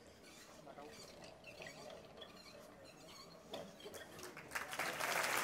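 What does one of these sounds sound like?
An orchestra plays softly in a large hall.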